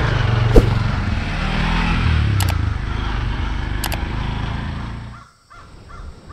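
A motorised rickshaw engine putters nearby.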